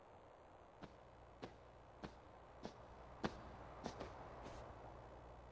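Footsteps tap evenly on a hard floor.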